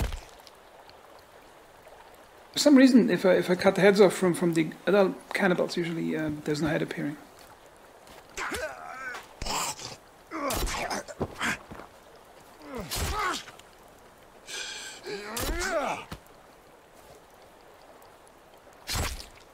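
An axe strikes flesh with heavy, wet thuds.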